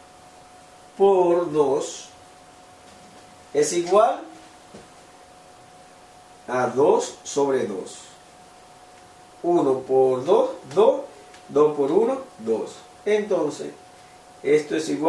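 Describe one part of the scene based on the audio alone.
An adult man explains calmly, close by.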